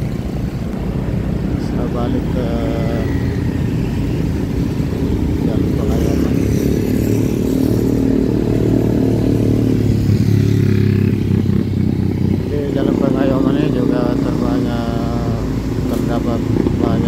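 Traffic rumbles steadily all around outdoors.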